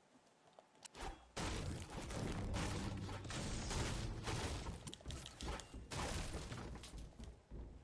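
A pickaxe strikes wood with heavy thuds.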